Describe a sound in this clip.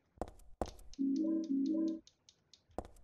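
A short electronic tone sounds twice.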